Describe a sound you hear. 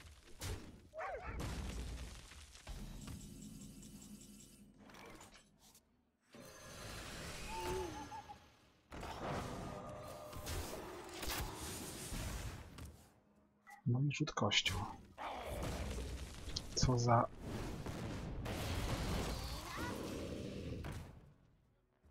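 Game sound effects chime and whoosh as cards are played.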